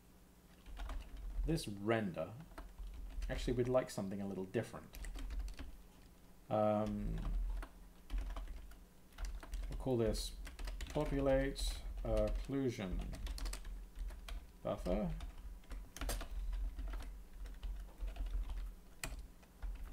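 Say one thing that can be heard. Keyboard keys click as a man types.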